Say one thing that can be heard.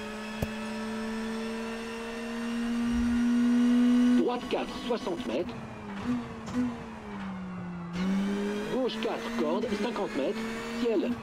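A car engine roars, revving higher and then dropping as gears change.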